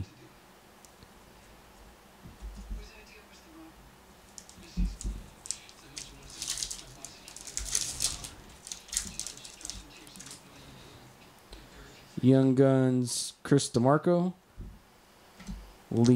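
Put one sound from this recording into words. Trading cards rustle as they are shuffled by hand.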